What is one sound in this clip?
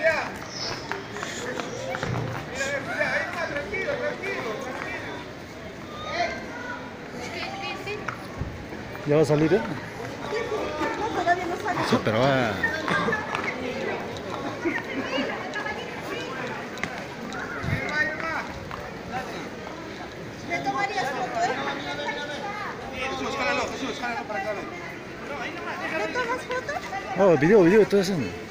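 Peruvian Paso horses walk with hooves clopping on cobblestones.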